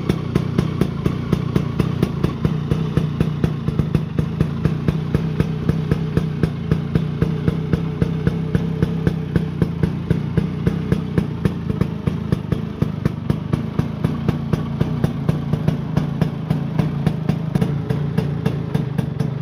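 A scooter's two-stroke engine idles with a steady, rapid puttering close by.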